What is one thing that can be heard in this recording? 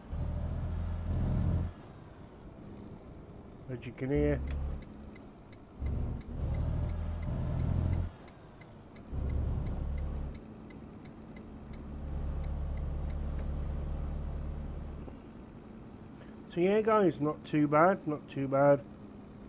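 A bus engine hums low and rises and falls as it drives.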